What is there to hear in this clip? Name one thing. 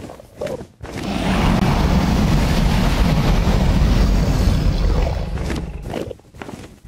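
A huge dragon roars with a deep, rumbling growl.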